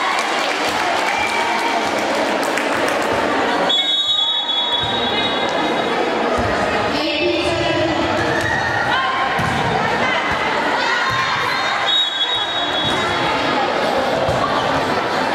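A volleyball thumps against hands and arms.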